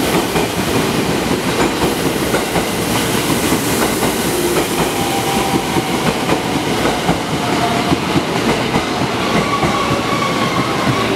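A train rumbles and clatters steadily along the track.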